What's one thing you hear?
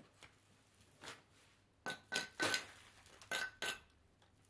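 A trowel scrapes old mortar off a brick.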